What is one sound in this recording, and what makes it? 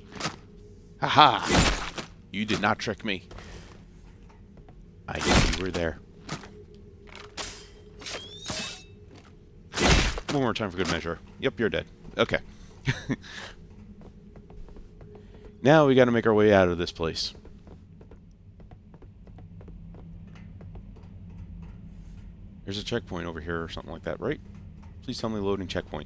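A man talks casually close to a microphone.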